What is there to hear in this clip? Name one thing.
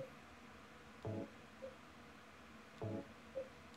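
Short soft beeps sound as menu choices change.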